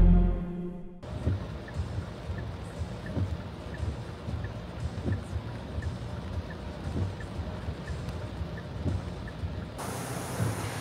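Rain patters on a car's roof and windscreen.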